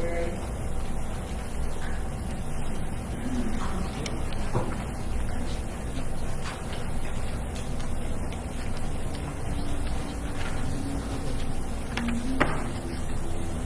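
A man speaks quietly at a distance in a large echoing hall.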